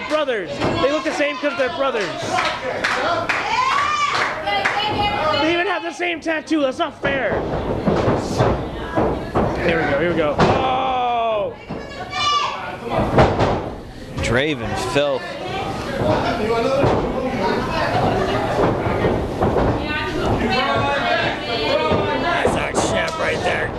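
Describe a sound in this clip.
A small crowd of spectators shouts and cheers.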